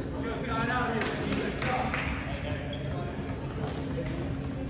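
A volleyball thumps off a player's hands.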